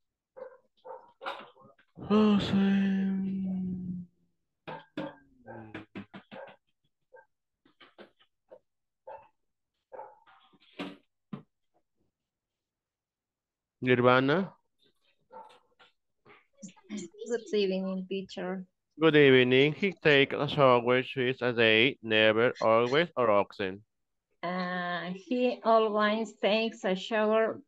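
A woman speaks calmly, heard through an online call.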